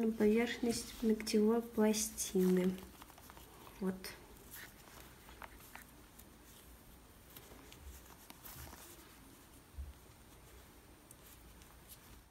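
A cotton pad rubs softly against a fingernail.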